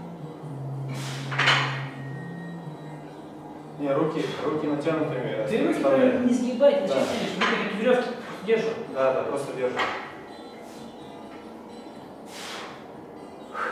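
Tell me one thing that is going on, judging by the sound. A loaded barbell clunks as its weights touch down on the floor.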